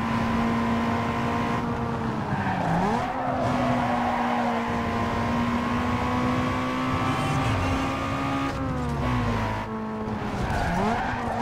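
A racing car engine roars at high revs, dropping briefly as gears shift and rising again.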